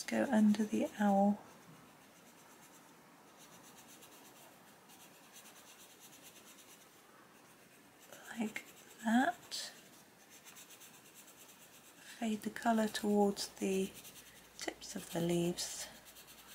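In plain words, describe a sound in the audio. A coloured pencil scratches softly across paper.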